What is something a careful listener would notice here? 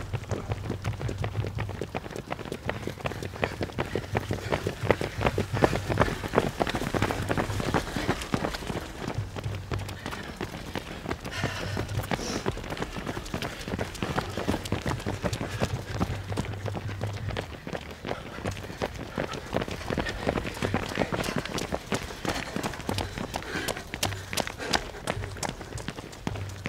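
Many runners' footsteps patter on a paved path.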